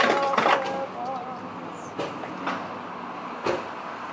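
Fuel pumps steadily into a car.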